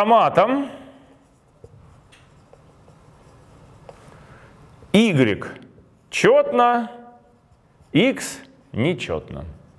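A man speaks calmly and clearly through a close microphone, in short bursts with pauses.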